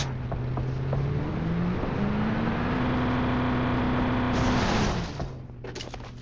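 A vehicle engine revs up and roars, then cuts off.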